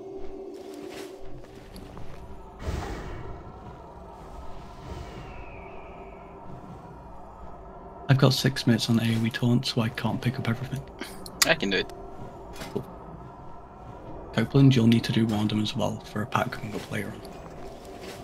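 Game spell effects crackle and chime as characters fight.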